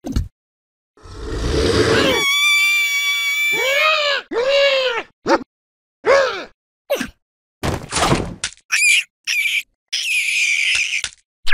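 A cartoon creature laughs loudly and raucously.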